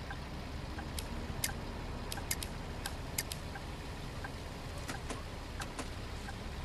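Buttons on a ticket machine click.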